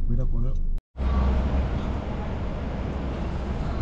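City traffic hums outdoors.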